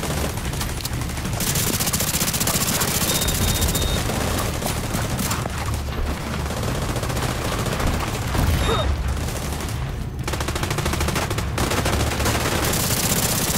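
Automatic gunfire rattles rapidly and keeps going.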